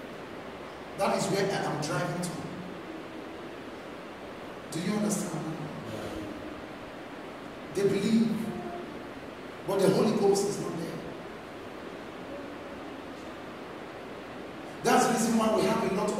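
A young man speaks with animation in short bursts, pausing between them.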